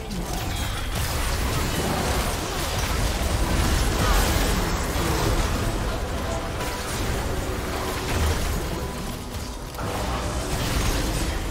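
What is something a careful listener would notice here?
Video game spell effects whoosh, crackle and clash during a fast battle.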